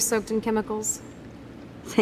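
A young woman speaks calmly.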